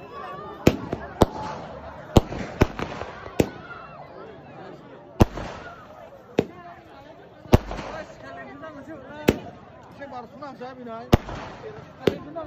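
Firecrackers bang loudly, one sharp blast after another.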